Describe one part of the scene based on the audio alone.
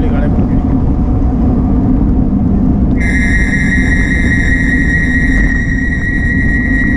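Wind rumbles loudly against a moving vehicle.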